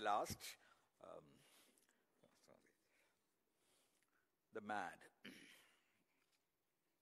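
An elderly man reads out slowly through a microphone, with long pauses.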